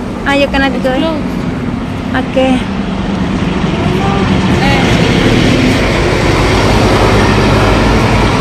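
A large truck engine drones as it passes close by.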